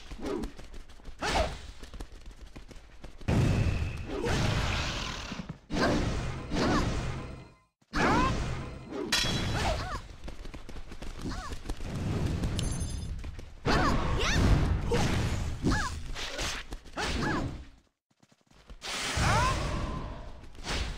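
Magic spells whoosh and crackle in bursts during a fight.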